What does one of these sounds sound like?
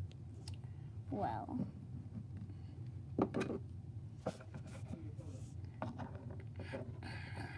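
Small plastic toys tap and scrape softly on a table.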